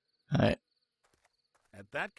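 Footsteps tap softly on the ground.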